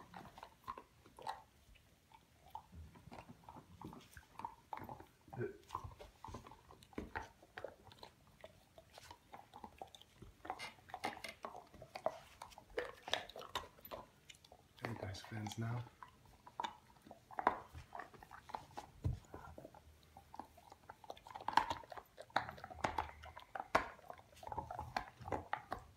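A puppy gnaws and crunches on a bone chew.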